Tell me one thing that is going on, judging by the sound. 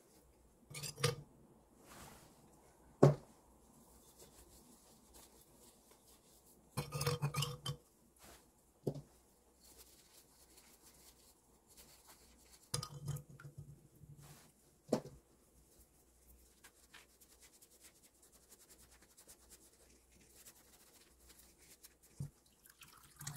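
Ceramic lids clink and knock together.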